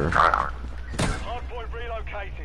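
A rifle fires sharp gunshots in a video game.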